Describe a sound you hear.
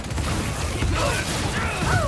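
A blast bursts with a loud boom.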